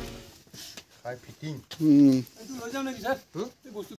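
A man speaks loudly nearby.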